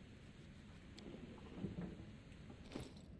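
A young man talks quietly into a close microphone.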